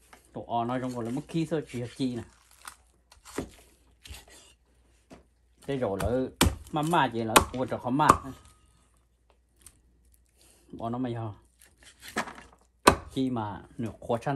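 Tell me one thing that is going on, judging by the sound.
A cleaver chops through meat onto a wooden board with sharp thuds.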